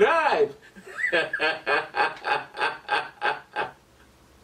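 A man laughs heartily in bursts.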